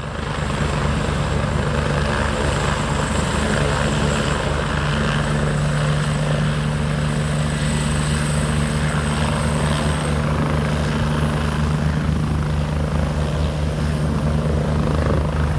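A helicopter's engine whines and its rotor thumps loudly nearby.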